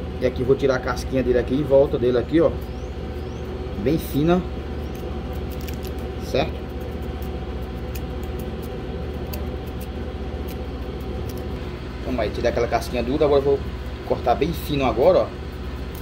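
A knife scrapes softly along the skin of a cucumber.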